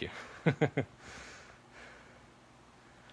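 A young man laughs softly.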